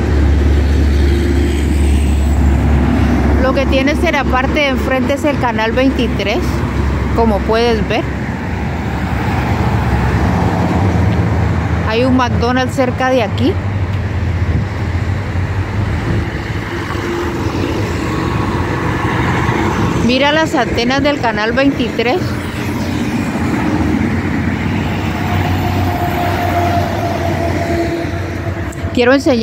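Traffic rushes past steadily on a busy road outdoors.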